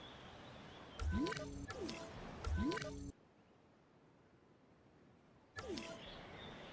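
Soft electronic menu chimes and swishes sound.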